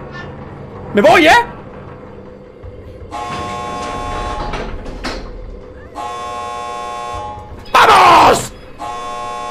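A young man screams loudly into a microphone.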